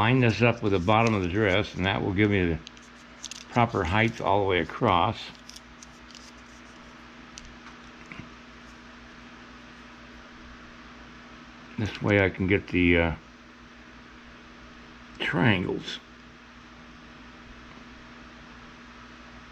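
A small tool scrapes softly against clay.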